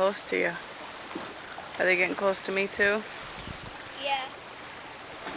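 A young girl speaks brightly and close by.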